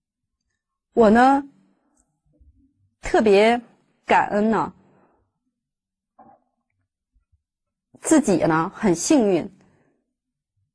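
A woman speaks calmly and closely into a microphone, in short phrases with pauses.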